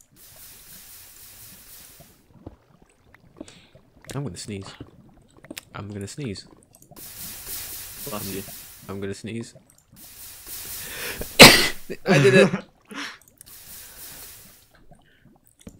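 Water pours and splashes.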